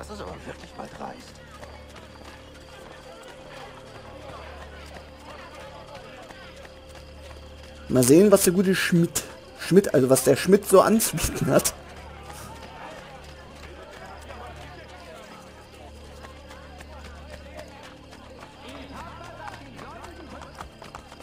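Quick footsteps run over cobblestones.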